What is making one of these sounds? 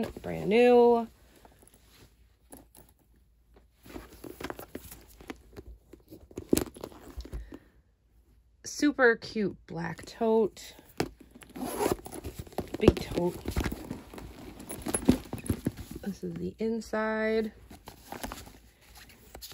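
A leather handbag rustles and knocks as hands handle it.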